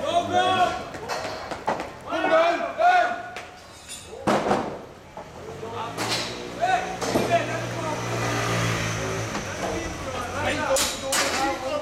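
Men call out to each other nearby, outdoors.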